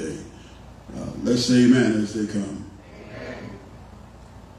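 A man speaks into a microphone, heard through loudspeakers in an echoing hall.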